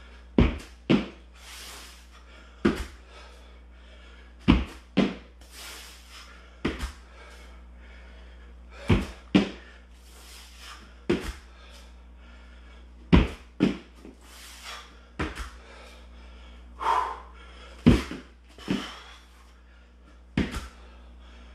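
Feet thump on a mat during a vigorous exercise.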